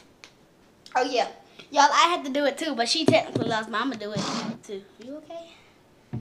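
A young child talks loudly close by.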